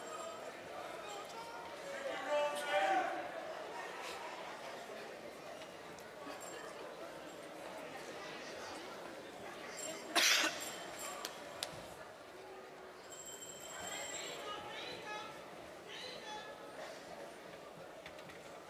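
An adult speaks through a microphone and loudspeakers in a large echoing hall.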